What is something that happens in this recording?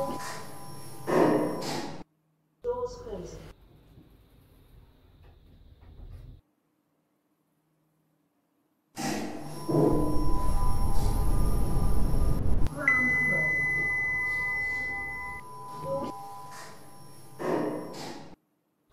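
Elevator doors slide open and shut.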